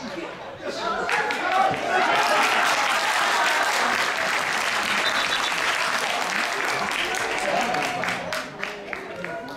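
Spectators cheer and shout loudly nearby.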